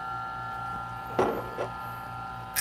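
Coffee beans rattle as they are poured into a grinder.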